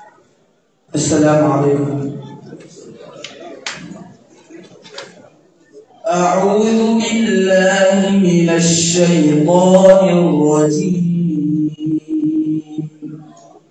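A boy recites in a high, clear voice through a microphone.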